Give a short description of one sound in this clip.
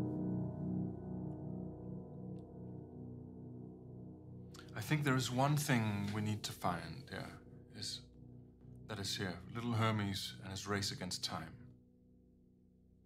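A piano plays soft chords that ring out and slowly fade.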